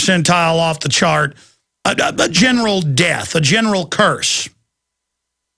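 A man speaks forcefully and with animation into a close microphone.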